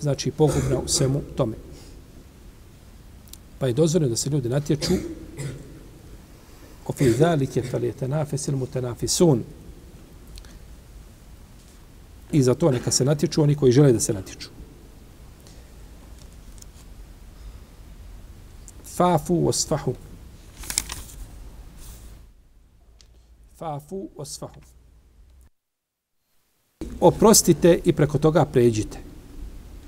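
A middle-aged man speaks calmly and slowly into a close microphone, with pauses.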